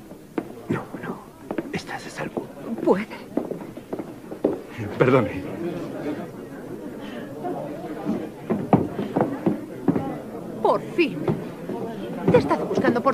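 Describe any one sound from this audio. A crowd of people chatters and calls out nearby.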